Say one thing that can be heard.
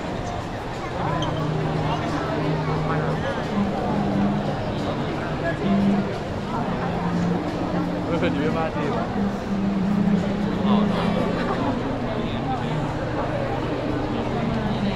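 A large crowd chatters and murmurs all around, close by.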